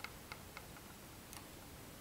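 Small scissors snip a thread.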